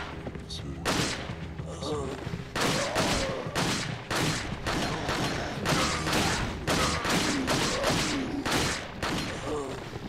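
A handgun fires rapid shots with echoing bangs.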